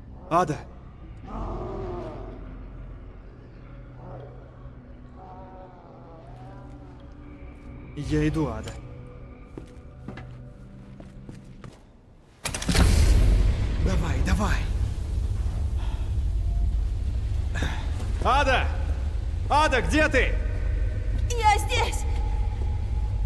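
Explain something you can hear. A young man calls out and speaks with tension.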